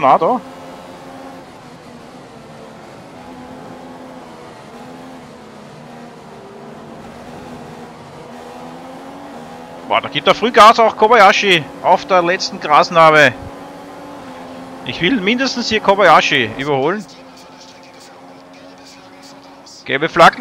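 A racing car engine whines at high revs, its pitch rising and falling with gear changes.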